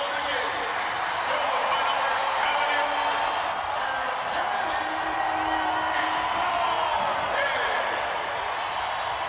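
A large crowd roars and cheers loudly in an echoing arena.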